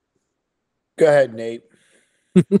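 A younger man speaks with animation over an online call.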